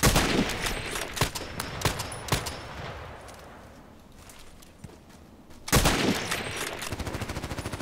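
A rifle bolt clacks as it is worked back and forth.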